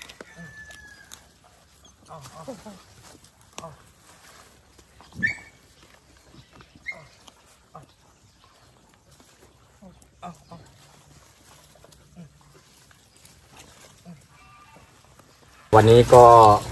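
Dogs' paws scuffle softly on grass.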